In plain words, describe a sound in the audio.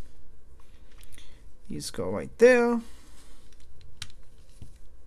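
Small plastic bricks click and rattle as they are fitted together.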